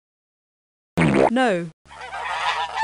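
A turkey gobbles loudly.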